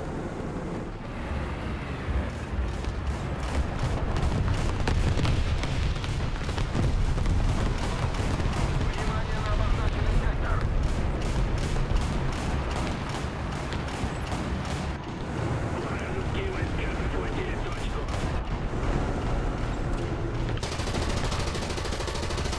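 A tank engine rumbles deeply.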